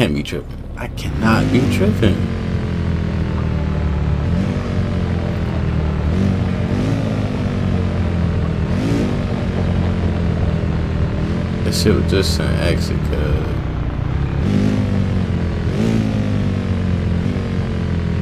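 A car engine starts, hums steadily and revs up and down as the car drives.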